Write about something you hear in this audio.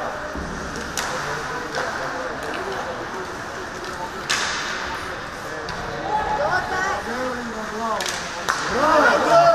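Hockey sticks and a puck clack sharply on the ice.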